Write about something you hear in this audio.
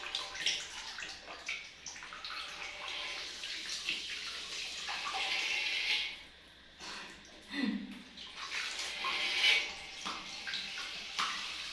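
Water sprays steadily from a shower head into a metal tub.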